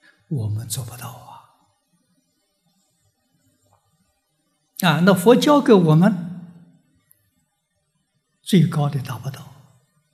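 An elderly man speaks calmly into a microphone in short phrases with pauses.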